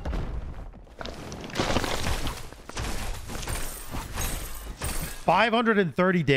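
Video game combat effects whoosh, clash and crackle.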